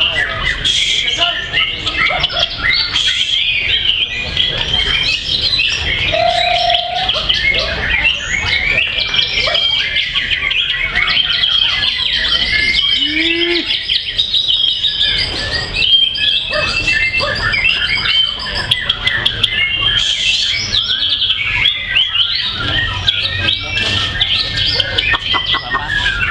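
A songbird sings a fast, varied, chattering song close by.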